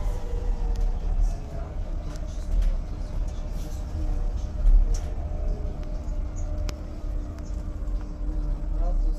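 A bus engine hums low and steady while driving.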